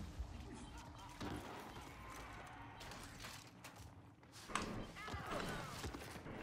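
Heavy footsteps thud as a soldier runs.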